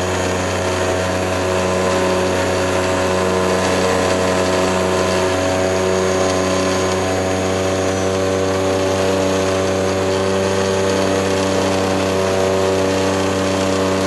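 Wind rushes loudly past the cockpit.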